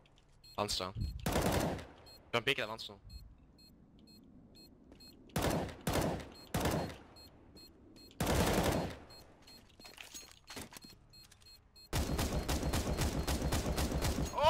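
Rifle shots fire in loud short bursts.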